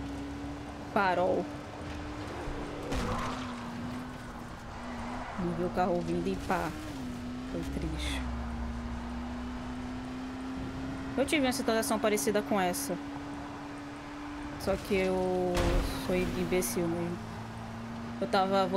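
A young woman speaks now and then into a close microphone.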